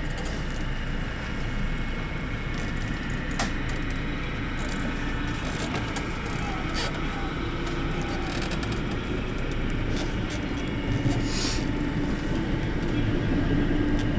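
A train rumbles steadily along the rails from inside a carriage.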